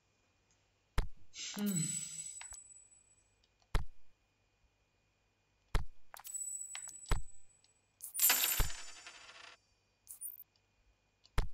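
Game menu sounds click and chime as options are confirmed.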